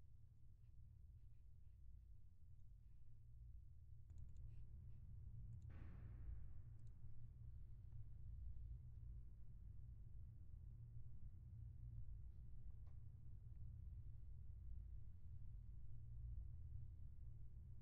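An organ plays low, sustained chords.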